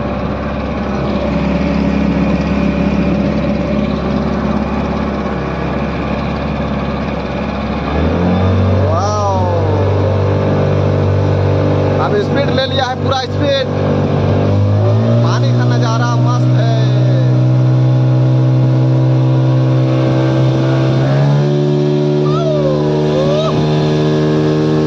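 An outboard motor drones steadily and rises in pitch as the boat speeds up.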